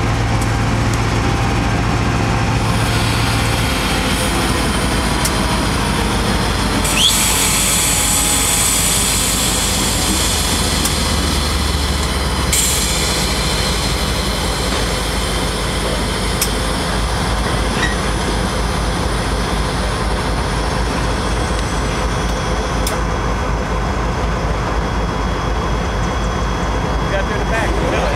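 Train wheels roll and clatter over the rails.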